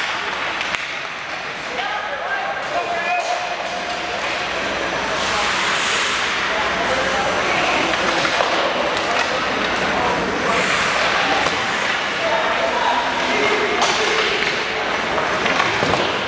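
Skates scrape and hiss across ice in a large echoing arena.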